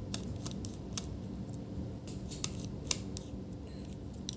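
A screwdriver clicks and scrapes against small metal screws.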